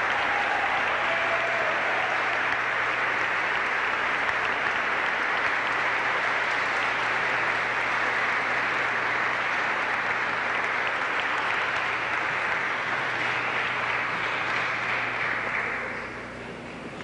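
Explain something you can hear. A large crowd applauds loudly in an echoing hall, then the applause dies away.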